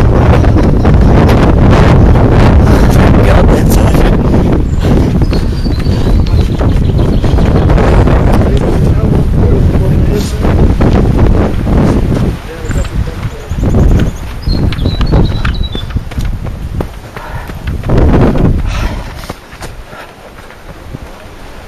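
Wind rushes and buffets loudly against the microphone while moving fast outdoors.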